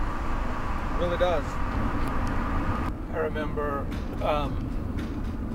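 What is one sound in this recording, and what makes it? A man speaks up close inside a car in short phrases.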